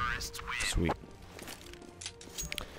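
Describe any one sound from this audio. A rifle clicks as it is drawn and handled.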